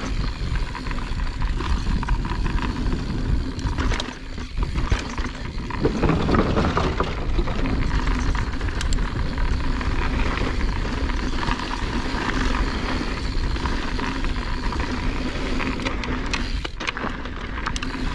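Bicycle tyres rumble over a wooden ramp and dirt.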